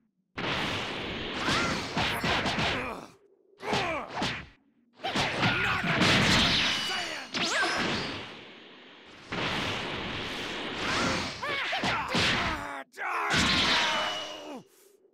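Energy blasts whoosh and explode in bursts.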